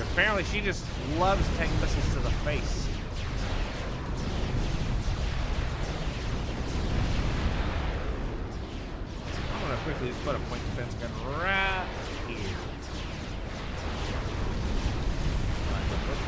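Explosions boom and rumble over and over.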